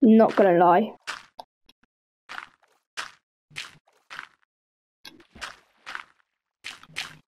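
Water splashes softly as a swimmer moves through it.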